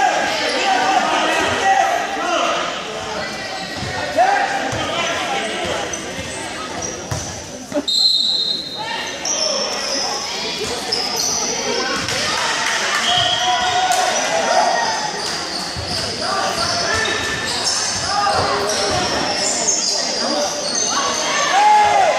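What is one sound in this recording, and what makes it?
A crowd of spectators talks and calls out, echoing in a large hall.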